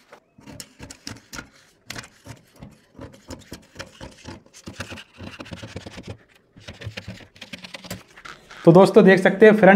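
Stiff paper rustles and slides under hands.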